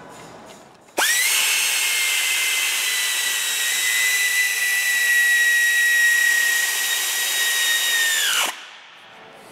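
A power tool whirs with a loud, steady high whine, then stops.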